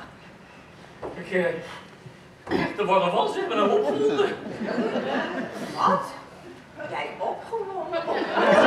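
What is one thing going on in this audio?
A man speaks in a raised, theatrical voice across a large hall.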